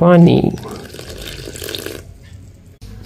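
Water pours into a metal bowl.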